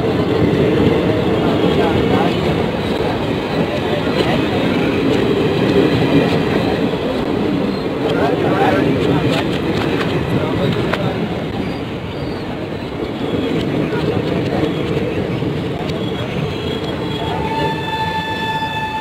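Train wheels clack steadily over rail joints.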